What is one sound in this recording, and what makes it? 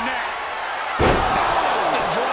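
A heavy body slams onto a mat with a thud.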